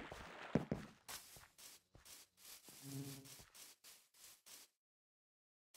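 Footsteps thud steadily on a dirt path.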